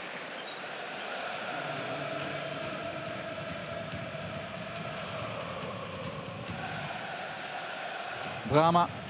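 A large stadium crowd chants in unison.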